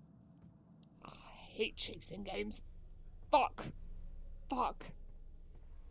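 A young woman talks with animation close to a headset microphone.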